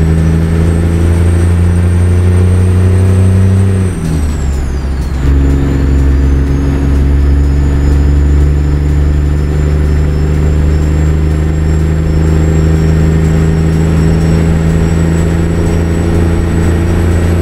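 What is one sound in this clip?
A truck engine drones loudly and steadily.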